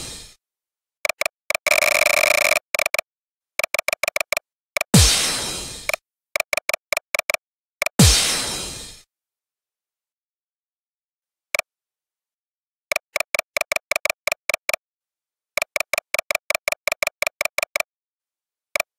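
Short electronic ticks play in a quick, even rhythm.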